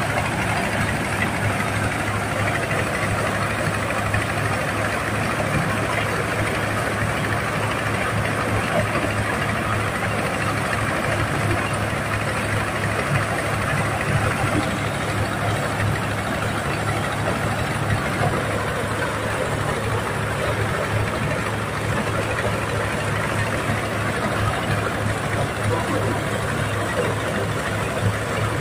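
A diesel engine runs loudly and steadily close by.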